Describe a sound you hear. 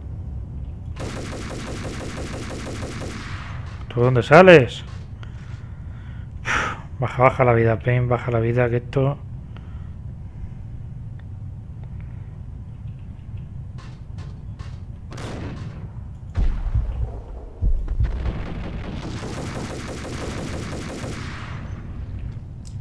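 A submachine gun fires rapid bursts, echoing off hard walls.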